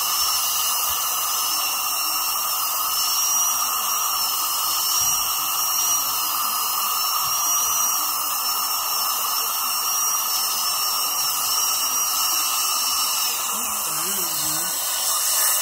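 A dental drill whines at a high pitch.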